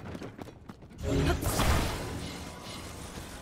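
A magical whoosh swells loudly and fades.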